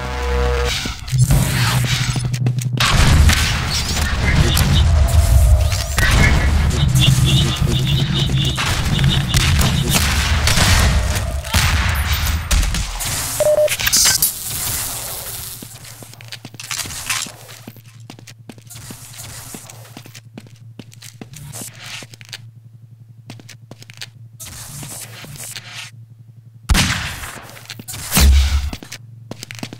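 Footsteps run quickly across hard floors.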